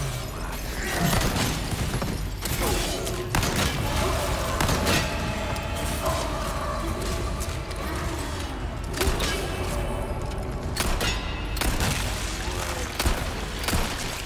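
Gunshots bang loudly in an echoing stone hall.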